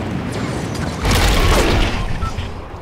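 A glider flaps open with a sudden loud whoosh.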